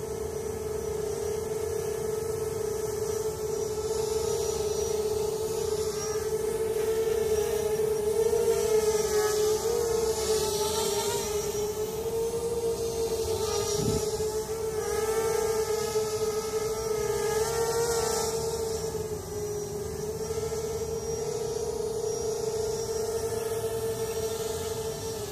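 A small drone buzzes overhead with a steady whine that wavers in pitch.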